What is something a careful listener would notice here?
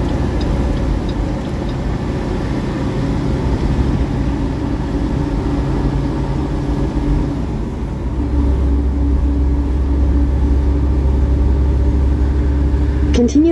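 A large truck rumbles close alongside.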